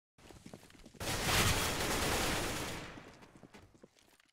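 A grenade bursts close by with a loud rushing roar that slowly fades.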